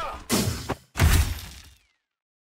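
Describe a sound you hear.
A katana slashes through a body with a wet, splattering hit.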